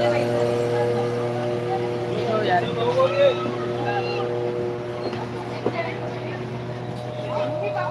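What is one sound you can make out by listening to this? A motorboat engine drones steadily and fades as it moves away.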